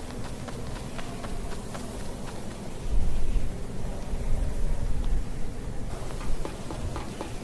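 Game footsteps patter as a figure runs.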